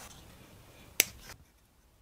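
Scissors snip through tape.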